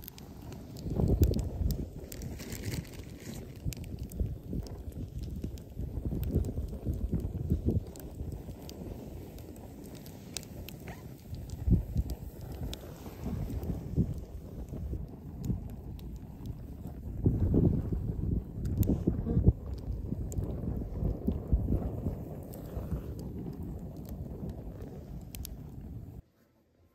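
A campfire crackles and roars in outdoor wind.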